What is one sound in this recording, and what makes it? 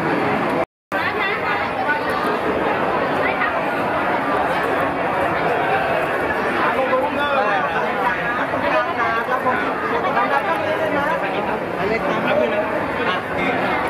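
A crowd chatters around in an echoing hall.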